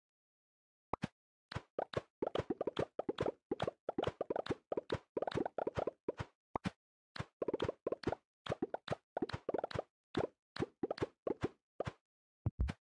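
Toppings sprinkle onto a plate in quick little bursts.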